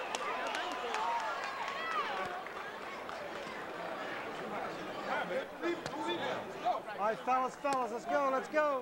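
A large crowd cheers and shouts loudly in a big arena.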